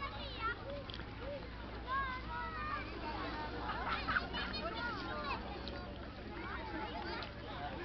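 Children and adults chatter and call out across open water outdoors.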